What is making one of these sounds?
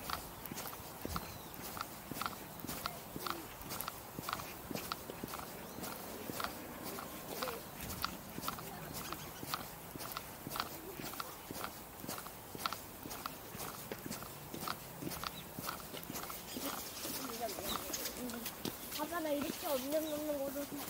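Footsteps tap steadily on a paved path outdoors.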